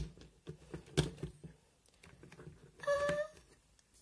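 A plastic toy carriage rolls across a wooden surface.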